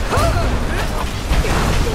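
A dragon roars overhead.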